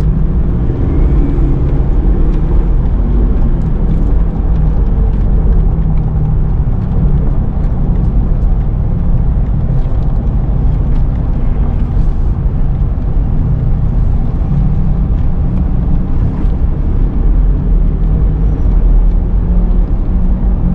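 A car engine hums steadily from inside while driving.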